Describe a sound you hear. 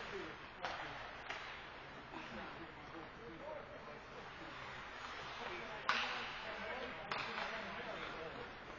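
Skates scrape and glide across ice in a large echoing rink.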